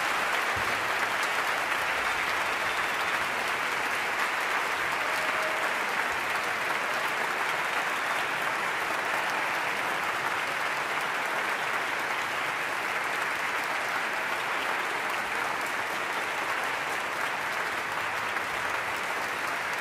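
A large audience applauds steadily in a large echoing hall.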